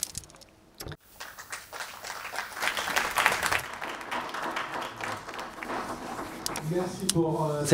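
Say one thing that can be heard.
Applause from an audience fills a large hall.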